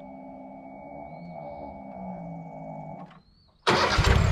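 An electric feed motor hums and whines, then cuts out.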